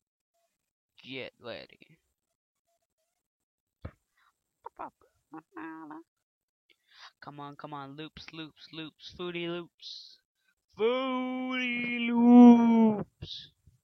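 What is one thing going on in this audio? A teenage boy talks with animation close to a microphone.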